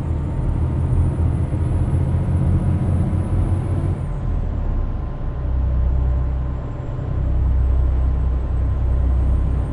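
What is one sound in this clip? A heavy truck engine drones steadily with a deep rumble.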